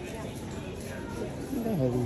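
Suitcase wheels roll across a hard floor.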